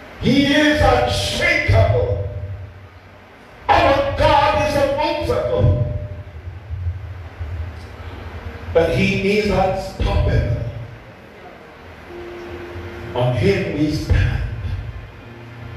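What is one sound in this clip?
A man preaches forcefully into a microphone over loudspeakers, in bursts with pauses, in an echoing hall.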